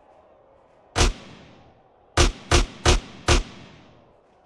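A shotgun fires several loud shots that echo briefly.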